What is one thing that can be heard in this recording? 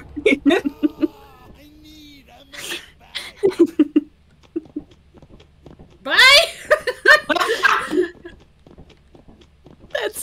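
A young woman talks with animation through a microphone, close up.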